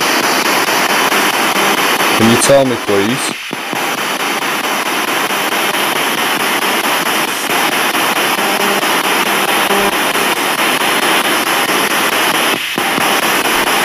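A radio receiver hisses with steady static.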